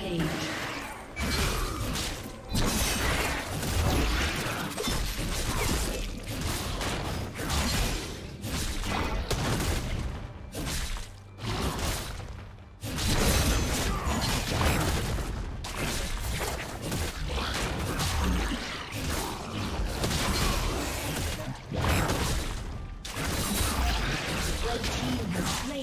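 Video game spell blasts and hits crash and boom during a fight.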